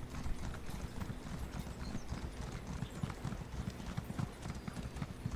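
Hooves thud steadily as a mount runs along a path.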